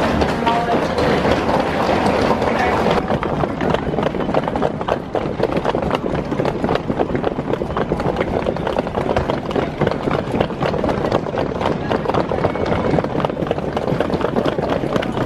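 Suitcase wheels rattle and clatter over a hard tiled floor.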